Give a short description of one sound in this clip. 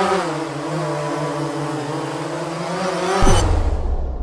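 A drone's propellers whir with a steady buzzing hum.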